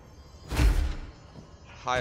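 A heavy thud sounds as something lands hard.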